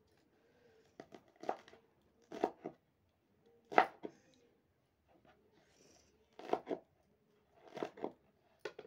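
A knife chops vegetables on a wooden board with sharp knocks.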